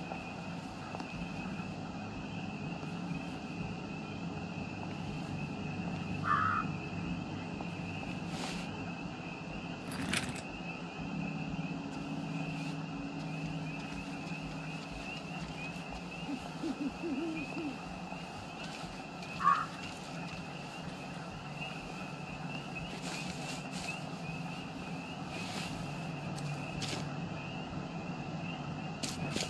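Footsteps rustle through tall grass at a steady walking pace.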